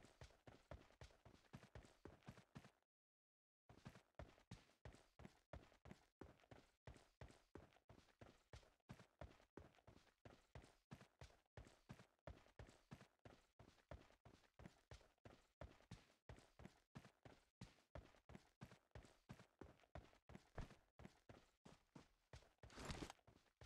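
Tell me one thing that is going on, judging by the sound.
Footsteps thud quickly and steadily on dirt and grass.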